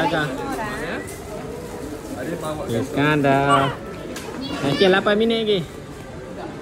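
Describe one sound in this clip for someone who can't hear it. A young woman talks close by in a casual voice.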